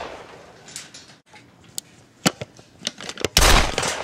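A toy foam blaster fires with a sharp click.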